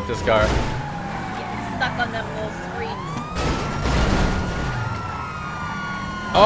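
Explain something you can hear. A police siren wails.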